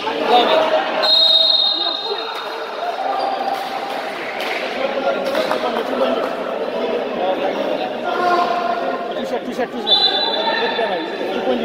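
Sneakers squeak sharply on a hard court in a large echoing hall.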